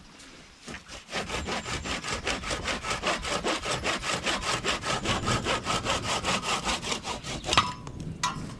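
A hand saw cuts through a branch with quick rapid strokes.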